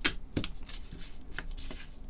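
Cards tap and rustle as a hand handles them.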